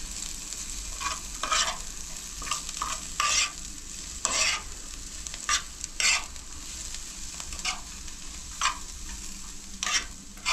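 A metal spoon scrapes and clinks against a pan while stirring.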